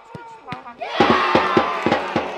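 Men shout and cheer loudly.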